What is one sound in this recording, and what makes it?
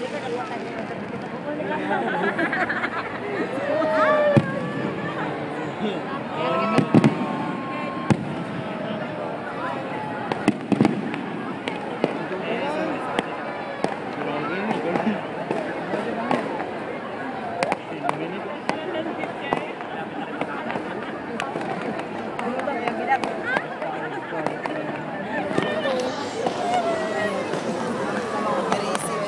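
A crowd of people chatters and cheers outdoors nearby.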